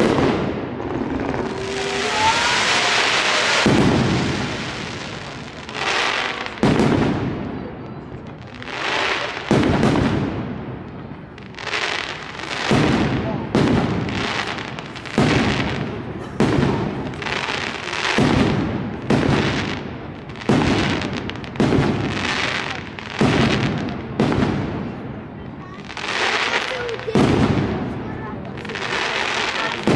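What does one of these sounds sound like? Fireworks burst with loud booming bangs that echo off buildings.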